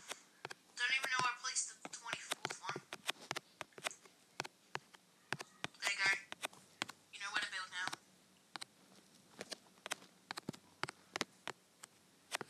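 Blocks are placed one after another with short, soft clicks.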